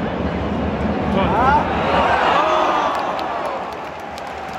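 A stadium crowd roars in excitement.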